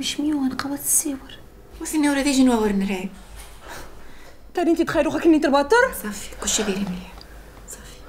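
A young woman speaks with concern, close by.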